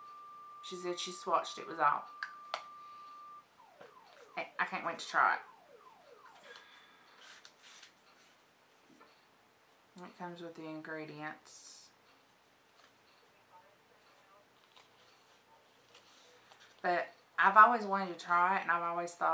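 A woman talks calmly and close by, with pauses.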